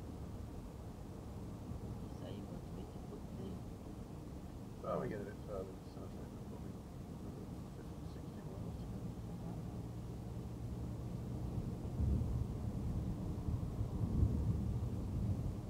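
A car's engine hums steadily with road noise from inside the car.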